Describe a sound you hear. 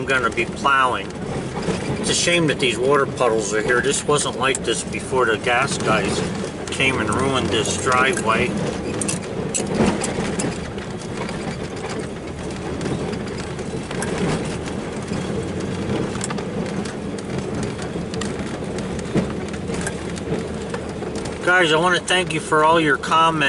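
An engine hums steadily as a vehicle drives slowly.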